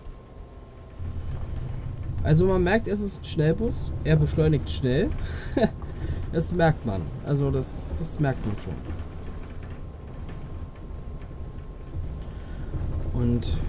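A bus engine rumbles low and steady as the bus drives.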